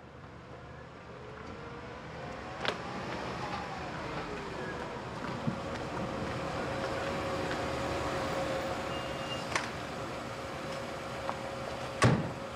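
A car engine approaches and idles nearby.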